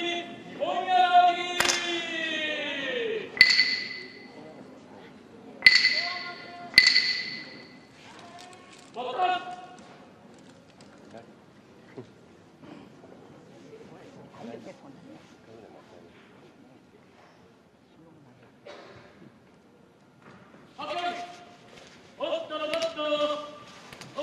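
A man calls out in a long, drawn-out chant in a large echoing hall.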